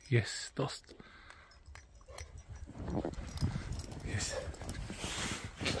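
A dog bounds through deep snow.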